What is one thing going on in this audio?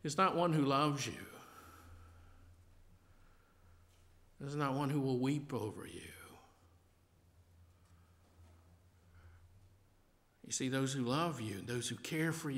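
An older man speaks slowly and calmly through a microphone in a reverberant room, with long pauses.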